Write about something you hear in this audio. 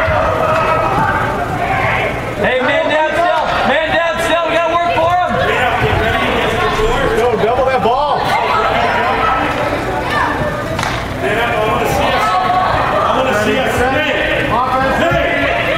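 Young teenage boys shout and call out to each other in an echoing indoor arena.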